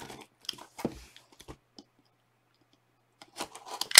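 A knife slices through a cardboard box's tape.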